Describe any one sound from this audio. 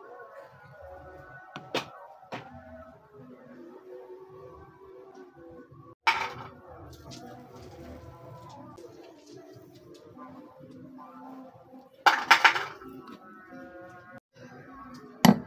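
A metal scoop scrapes through soft ice cream.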